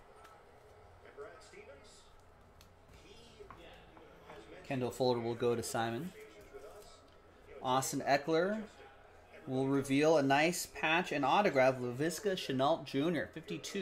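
Cards rustle and slide in hands.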